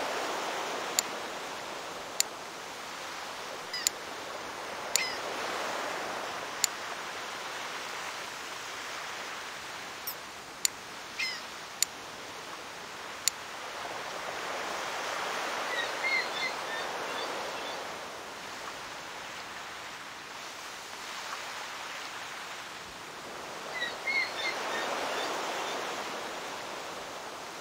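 Waves wash and swell in slow surges.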